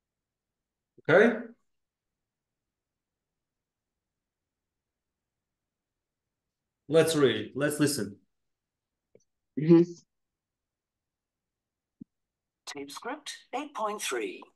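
A man speaks in short bursts through a microphone, with pauses of silence.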